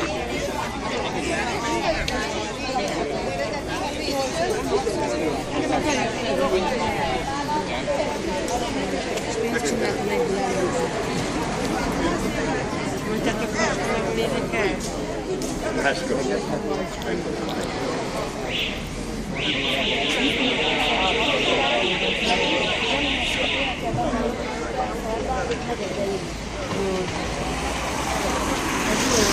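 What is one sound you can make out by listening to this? A crowd of men and women chatter outdoors close by.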